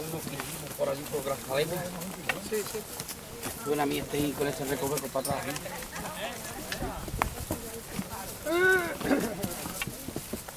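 Walking poles tap on stones.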